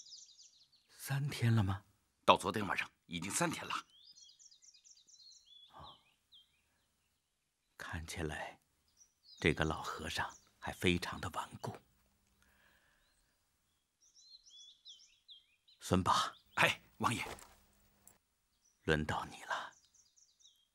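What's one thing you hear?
A middle-aged man speaks.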